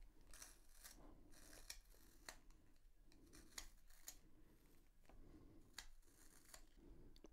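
A pencil scrapes and grinds in a small sharpener with soft, repeated strokes.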